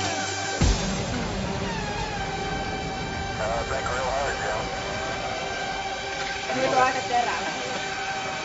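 A young woman sings loudly and cheerfully close by.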